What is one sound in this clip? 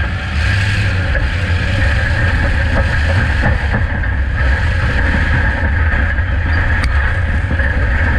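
Tyres spin and skid on dirt.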